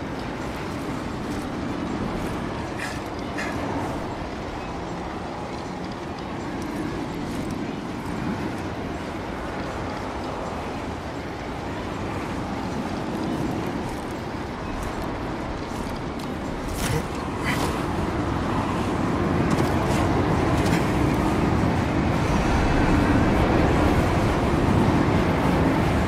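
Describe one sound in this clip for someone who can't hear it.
Strong wind howls and gusts steadily outdoors.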